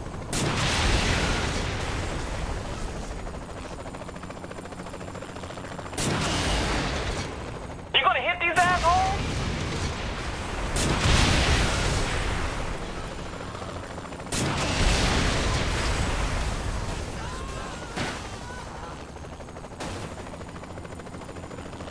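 Explosions boom and rumble, then slowly fade.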